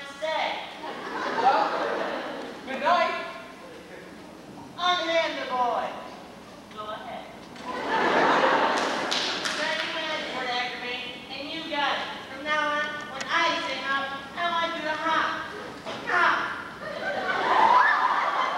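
A young man sings on a stage, heard from a distance in a large hall.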